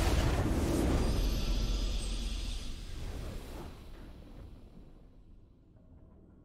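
A triumphant fanfare swells and then fades away.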